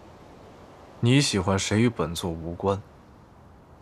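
A young man speaks calmly and low, close by.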